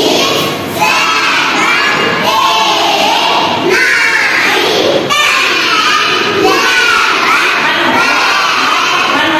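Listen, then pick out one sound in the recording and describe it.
A group of young children chant together.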